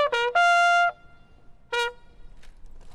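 A bugle sounds loud, clear notes close by.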